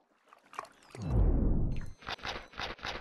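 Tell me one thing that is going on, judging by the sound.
A deep rumbling whoosh sweeps downward as a shark lunges.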